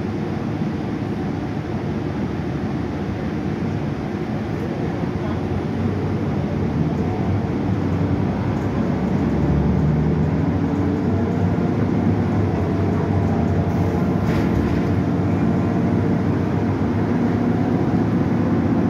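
A bus engine hums and rumbles steadily as the bus drives along, growing louder.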